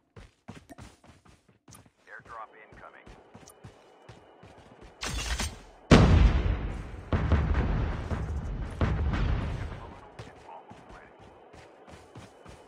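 Footsteps run over dry grass and dirt.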